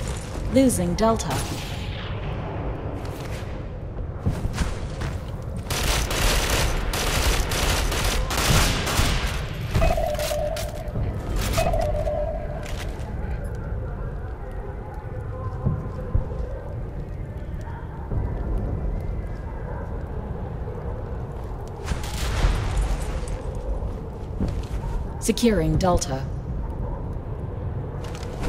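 Gunfire cracks in loud bursts.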